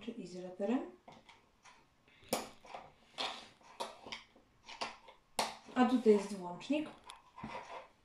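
Plastic circuit pieces click as they snap into place.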